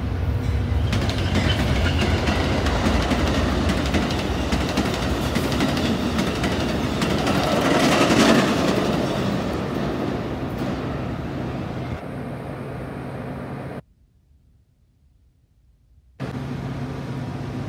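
A train engine rumbles steadily nearby.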